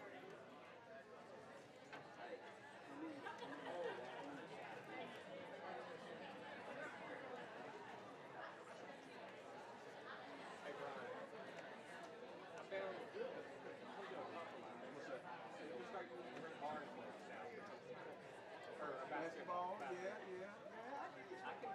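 A crowd of men and women chatters in a large room.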